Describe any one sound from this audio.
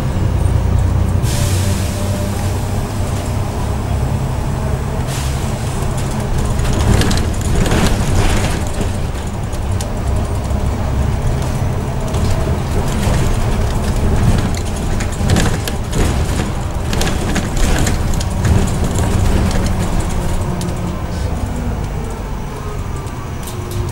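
Loose parts inside a bus rattle and clatter over bumps.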